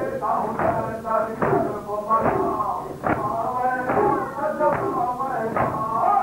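A crowd of men beats their chests in a steady rhythm.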